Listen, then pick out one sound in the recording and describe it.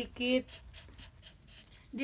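A dog pants softly close by.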